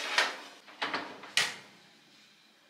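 An oven door clatters open and shut.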